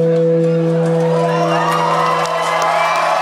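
A guitar chord rings out and fades.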